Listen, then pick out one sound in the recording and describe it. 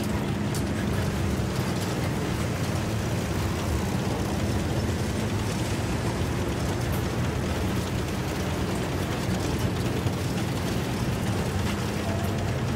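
Tank tracks clank and squeak over the ground.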